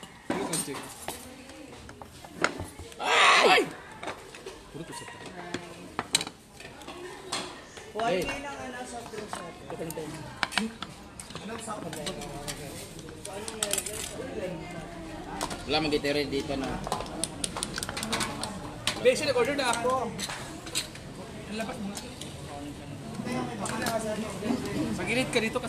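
Several young men talk casually close by.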